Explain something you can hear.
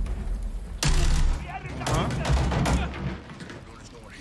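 Gunshots from a video game fire in rapid bursts.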